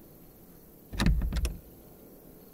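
A wooden door bangs open with a couple of loud knocks.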